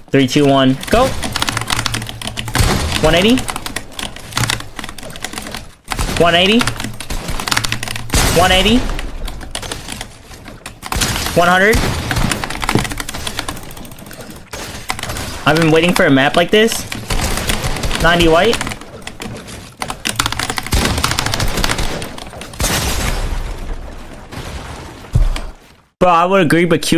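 Game building pieces clack and thud rapidly.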